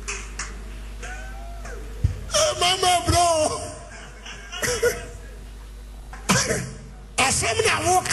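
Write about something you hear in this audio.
A man preaches forcefully into a microphone, heard through loudspeakers in a large hall.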